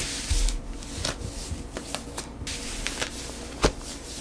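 Fabric rustles as a knee brace is pulled on.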